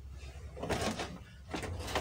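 A bed cover rustles as it is pulled.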